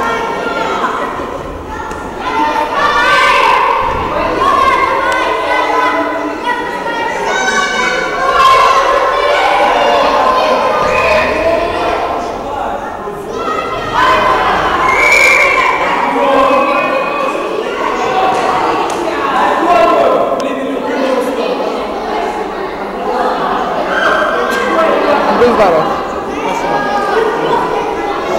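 Children shout and cheer loudly in a large echoing hall.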